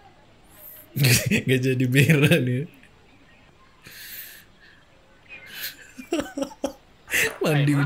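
A man laughs heartily close to a microphone.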